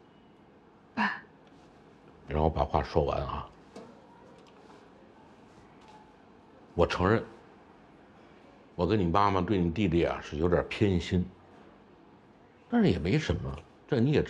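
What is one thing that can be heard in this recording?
An older man speaks calmly and quietly, close by.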